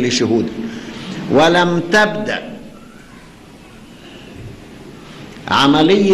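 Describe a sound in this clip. An elderly man speaks slowly and solemnly into a microphone in a large echoing hall.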